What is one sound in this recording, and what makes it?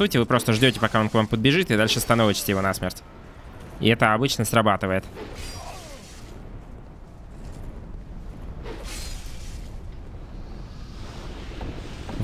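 Metal blades clash and strike.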